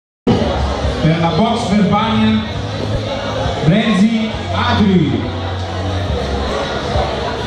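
A crowd of men chatters in a large echoing hall.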